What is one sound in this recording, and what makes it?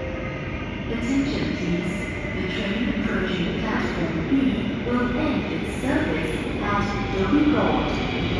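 A train rumbles closer through an echoing tunnel.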